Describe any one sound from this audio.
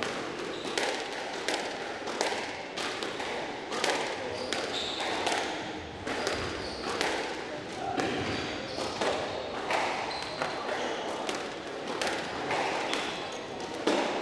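A squash ball smacks sharply off rackets and walls in a quick, echoing rally.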